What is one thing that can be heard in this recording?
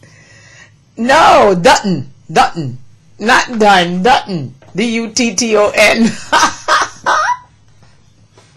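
A woman talks with animation into a microphone.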